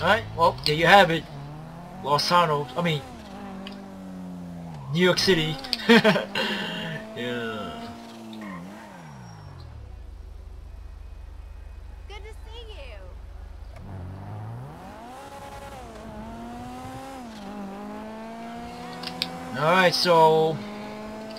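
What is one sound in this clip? A sports car engine revs hard and roars, rising and falling as gears shift.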